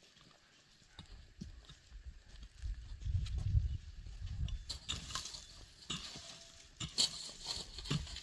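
A man scrapes and sweeps dry earth with a stick.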